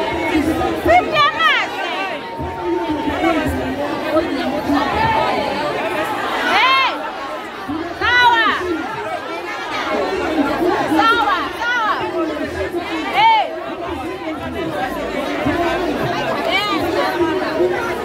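Young people in a crowd shout out.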